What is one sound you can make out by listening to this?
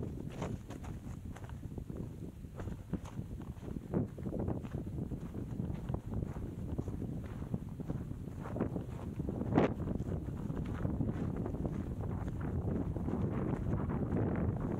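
Wind buffets loudly across the microphone outdoors.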